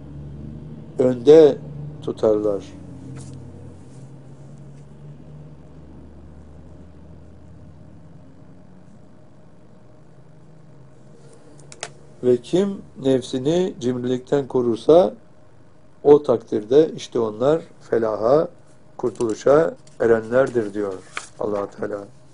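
An elderly man speaks calmly and clearly into a nearby microphone.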